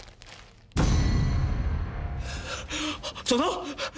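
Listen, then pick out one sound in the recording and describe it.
A man gasps in shock.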